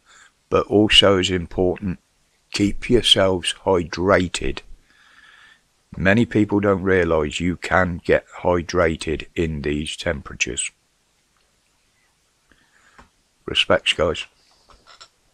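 An elderly man talks with animation close to a microphone.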